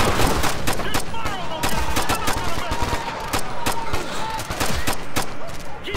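Rapid gunfire crackles and bangs nearby.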